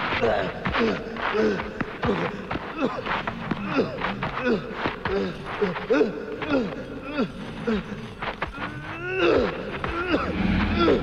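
A man growls and snarls fiercely.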